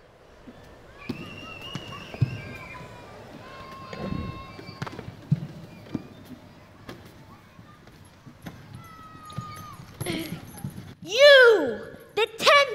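Children shout and squeal playfully in a large hall.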